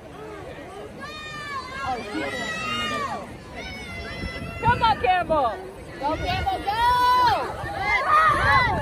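A young woman shouts encouragement close by.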